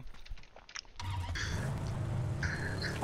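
A car engine runs.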